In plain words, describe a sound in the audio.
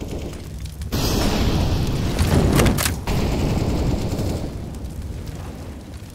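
Flames roar and crackle as a fire burns.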